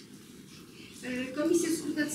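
A woman speaks clearly in a small room.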